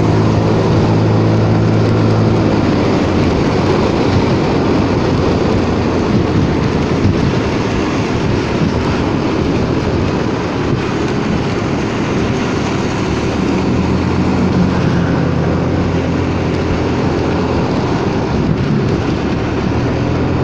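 A motor scooter engine hums steadily as it rides.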